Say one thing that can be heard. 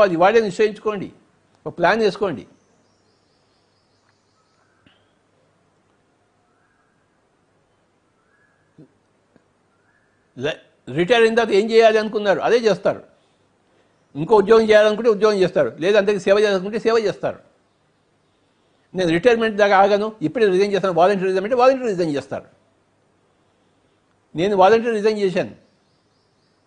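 An elderly man speaks calmly and closely into a microphone, pausing between phrases.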